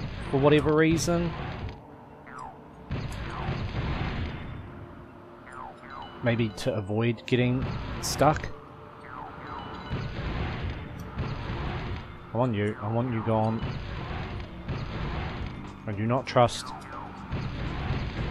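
A magic blast shoots out with a zap.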